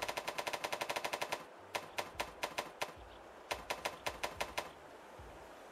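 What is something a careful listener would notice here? Game menu clicks tick rapidly as a cursor scrolls through a list.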